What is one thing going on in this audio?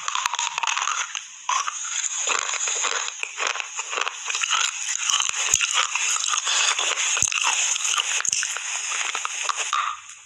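A woman bites into crunchy food very close to a microphone.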